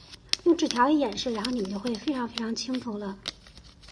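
Paper rustles between fingers.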